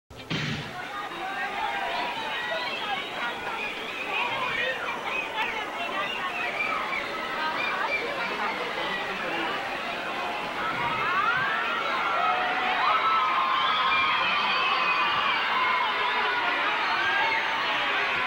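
A crowd of men shouts and cheers excitedly.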